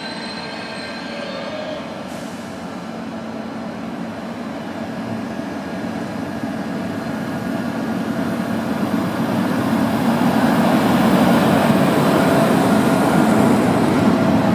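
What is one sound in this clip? Electric locomotives approach and pass close by, growing louder.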